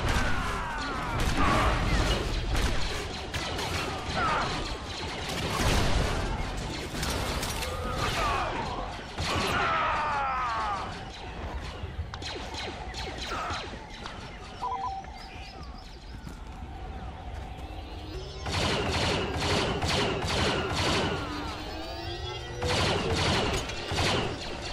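Laser bolts zip and whine past.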